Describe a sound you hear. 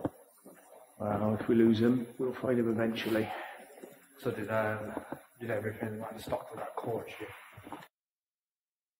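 A man speaks with animation close by, in an echoing space.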